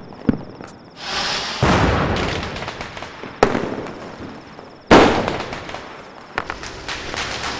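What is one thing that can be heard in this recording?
A firework fountain hisses and crackles.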